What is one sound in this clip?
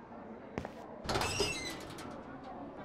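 A metal locker door clanks open.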